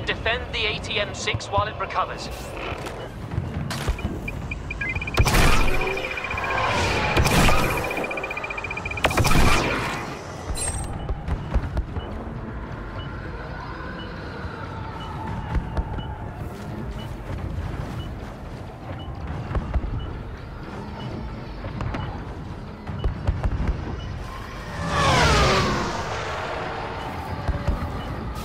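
Laser blasters fire in quick, sharp bursts.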